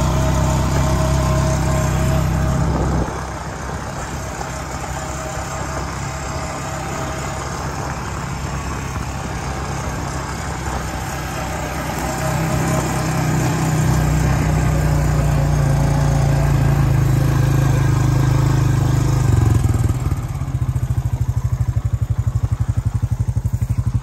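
An all-terrain vehicle engine rumbles steadily close by, rising and falling with the throttle.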